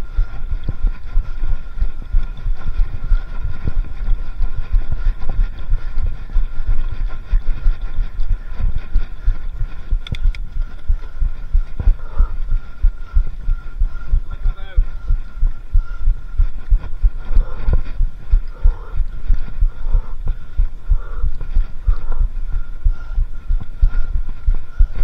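Wind buffets loudly against a microphone.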